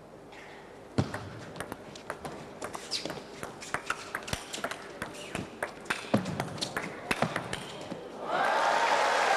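A table tennis ball clicks back and forth on paddles and table.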